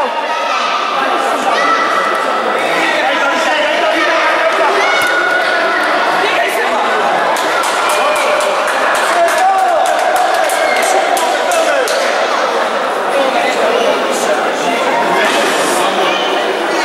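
Young players shout across an echoing sports hall.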